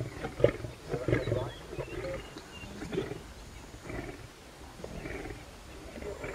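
Lions tear and chew at meat close by, with wet crunching and ripping.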